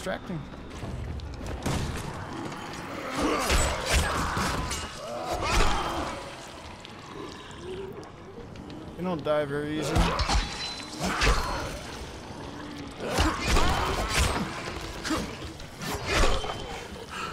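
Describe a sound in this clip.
A machete slashes and thuds into bodies.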